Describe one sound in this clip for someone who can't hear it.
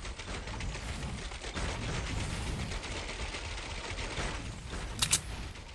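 Footsteps patter rapidly on wooden ramps.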